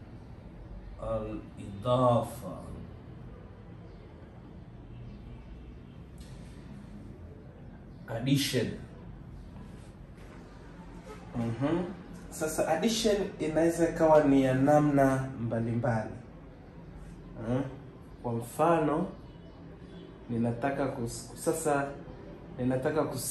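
A man speaks calmly and clearly nearby, pausing between phrases.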